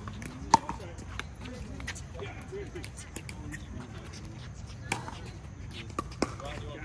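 Paddles smack a plastic ball with sharp pops, outdoors.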